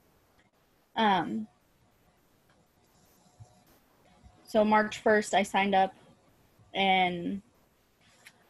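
A young woman speaks in short bursts over an online call.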